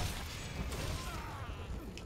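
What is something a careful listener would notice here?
A fiery explosion bursts with a loud crackling roar.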